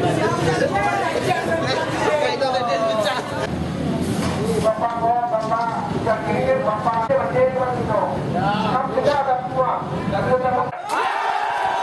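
A crowd of men talk and shout at once nearby.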